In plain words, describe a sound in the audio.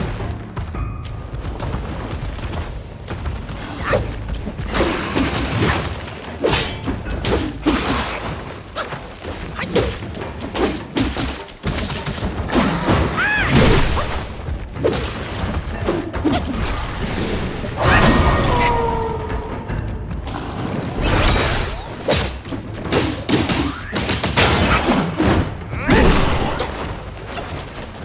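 A giant beast growls and roars.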